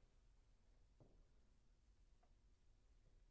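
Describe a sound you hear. A piano plays a few soft, sparse notes.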